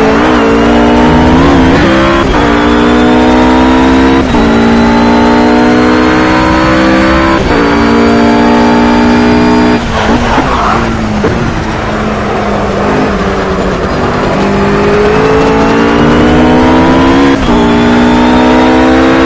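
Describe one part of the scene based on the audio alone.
A GT3 racing car engine accelerates hard, shifting up through the gears.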